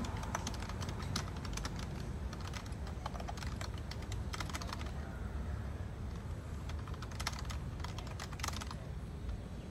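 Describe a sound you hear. Fingers tap quickly on a small keyboard.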